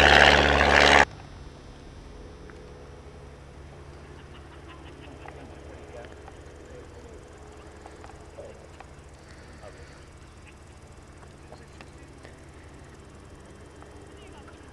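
A small propeller plane drones faintly far overhead.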